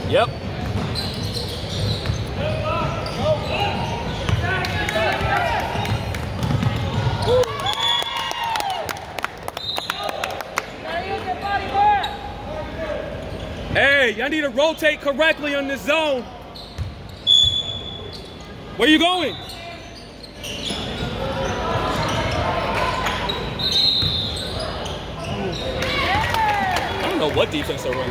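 A crowd of spectators chatters and cheers.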